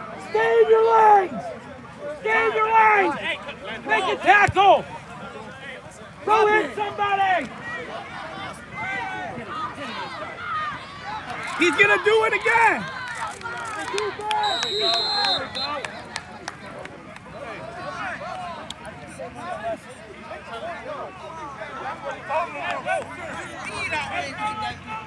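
A crowd cheers and yells in the distance.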